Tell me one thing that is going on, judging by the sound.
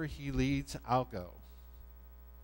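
An elderly man speaks through a microphone in a large echoing hall.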